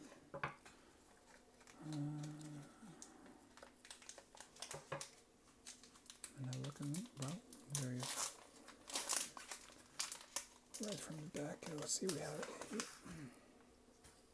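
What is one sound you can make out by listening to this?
A plastic wrapper crinkles and rustles in hands.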